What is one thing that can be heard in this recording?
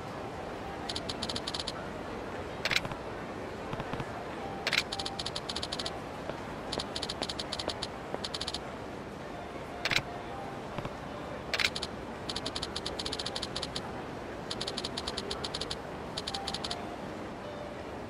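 Rapid electronic blips chatter in short bursts.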